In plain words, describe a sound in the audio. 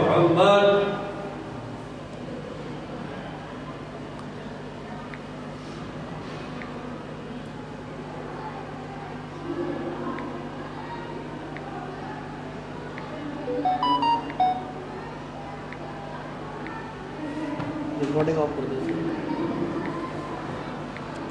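An elderly man recites slowly into a microphone, heard through loudspeakers.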